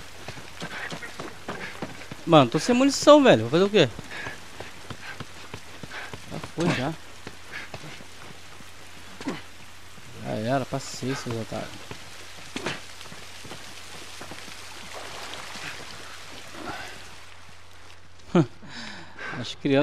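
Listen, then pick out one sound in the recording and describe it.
Footsteps crunch on gravel and debris.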